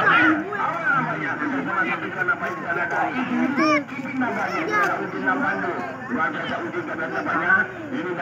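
A crowd of spectators chatters and shouts nearby outdoors.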